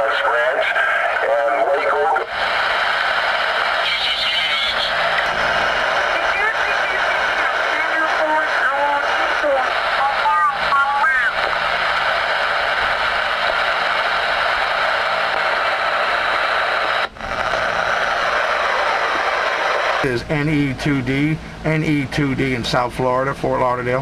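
A man's voice talks through a crackly radio loudspeaker.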